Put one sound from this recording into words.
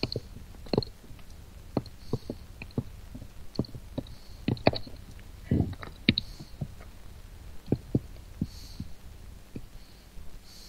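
Blocks are placed with short, soft knocks.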